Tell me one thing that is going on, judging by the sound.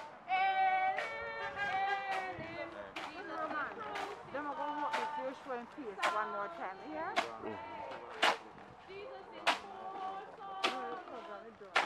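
A group of men and women sings a slow hymn outdoors.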